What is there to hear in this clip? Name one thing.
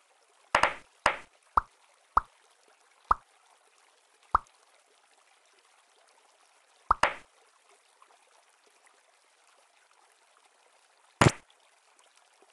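Short bright pops sound as game blocks merge together.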